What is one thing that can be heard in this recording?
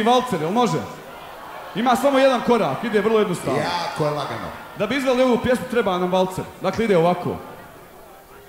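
A man shouts with energy through a microphone over loudspeakers.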